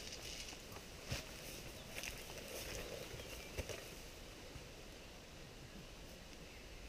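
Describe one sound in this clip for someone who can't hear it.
Leaves rustle softly in a light breeze outdoors.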